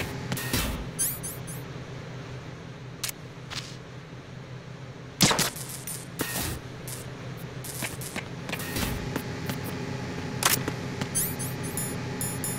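Electronic menu beeps chirp quickly.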